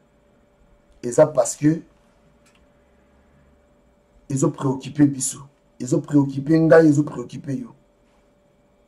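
A man speaks calmly and close to a microphone, in short bursts with pauses.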